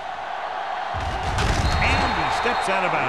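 Football players collide with a heavy thud.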